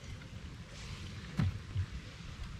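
A handful of wet plants drops into a plastic bucket.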